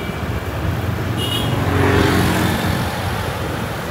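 A motorbike passes close by, its engine rising and fading.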